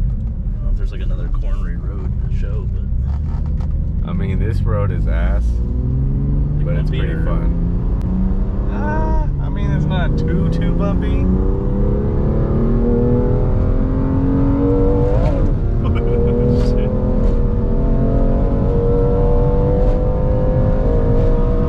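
A car engine hums and rises steadily in pitch as the car speeds up.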